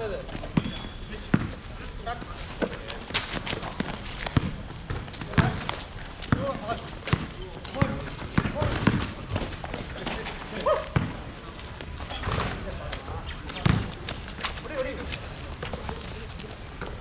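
A basketball bounces repeatedly on a hard outdoor court.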